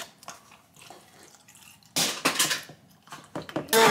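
Milk pours from a carton.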